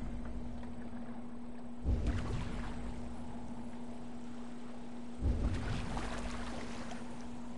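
Waves wash steadily around a rowing boat.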